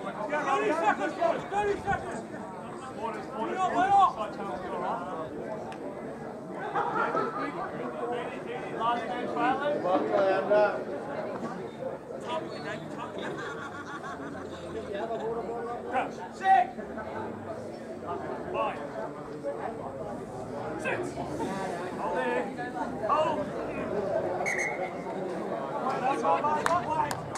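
Men shout and call to each other outdoors on an open field.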